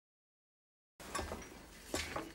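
Hands work a rope around a metal post.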